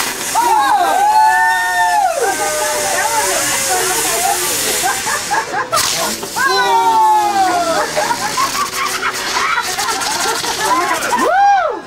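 A firework fountain hisses and crackles as it sprays sparks.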